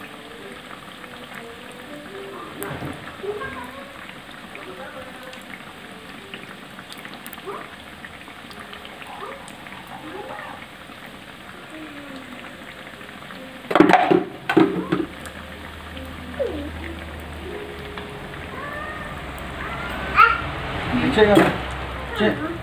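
Hot oil sizzles and crackles steadily as food fries.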